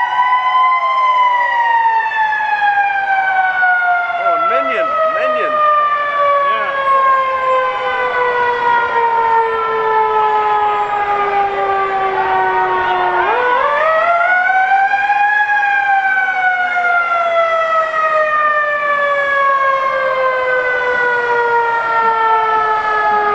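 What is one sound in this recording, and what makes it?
A fire truck siren wails loudly, slowly falling in pitch and then rising again.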